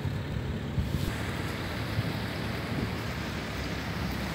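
Wind blows outdoors over open water.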